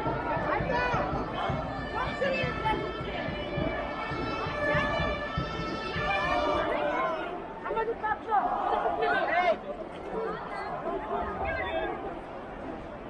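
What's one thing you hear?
A large crowd of men and women chants and shouts loudly outdoors.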